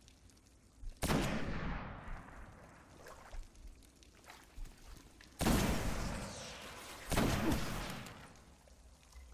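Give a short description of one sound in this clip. Loud rifle shots boom and echo away.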